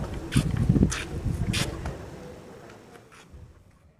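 A young man taps on a mobile phone.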